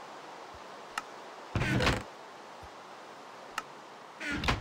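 Items click softly as they are moved between slots.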